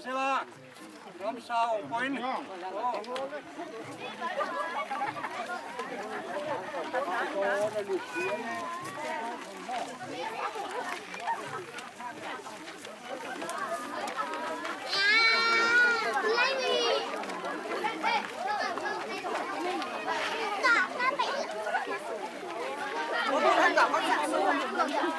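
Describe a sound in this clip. A crowd of men and women chatter and call out outdoors.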